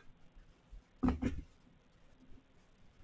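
A cat brushes and bumps close by with soft thumps.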